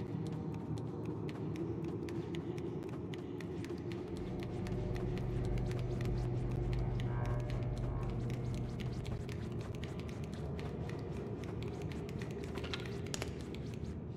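Small footsteps patter quickly on a hard floor.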